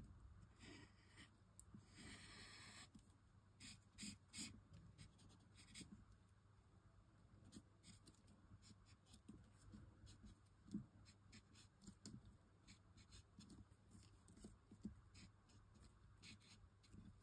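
An alcohol marker squeaks and scratches as it is drawn along the edges of card.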